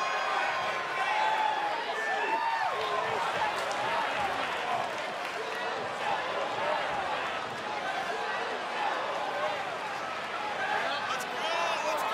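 A large crowd cheers and roars in an open stadium.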